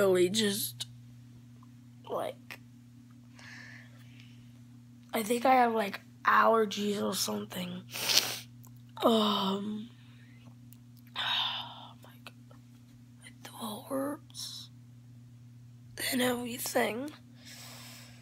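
A boy talks close to the microphone in short, lazy bursts.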